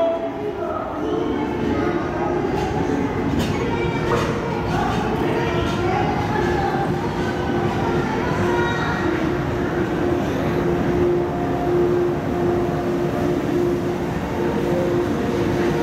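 Train wheels rumble and squeal along the rails.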